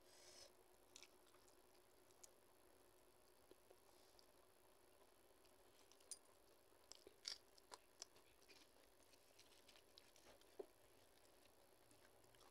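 A woman chews food.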